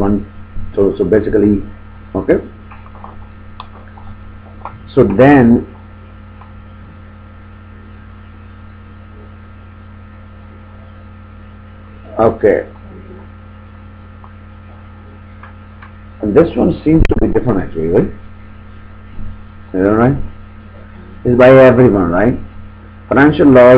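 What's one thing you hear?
A man speaks calmly and haltingly into a nearby microphone, with long pauses.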